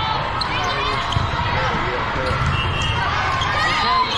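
A volleyball thuds against hands and arms.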